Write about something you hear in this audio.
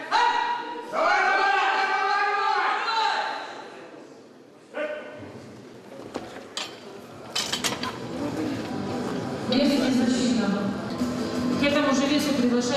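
Men shout loudly in encouragement.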